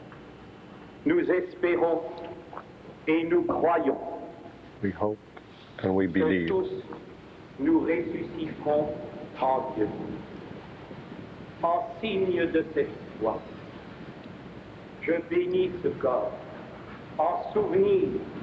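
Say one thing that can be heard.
A man reads out slowly through a microphone in a large echoing hall.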